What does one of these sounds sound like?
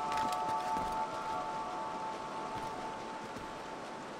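Footsteps thud softly on a wooden roof.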